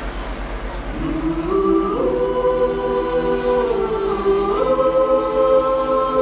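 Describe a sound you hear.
A mixed choir of men and women sings together in harmony.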